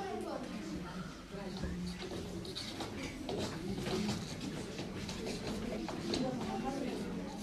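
Footsteps shuffle across a wooden stage.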